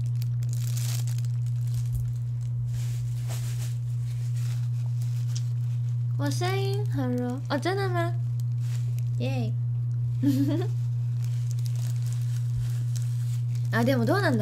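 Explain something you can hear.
A plastic bag crinkles in a young woman's hands.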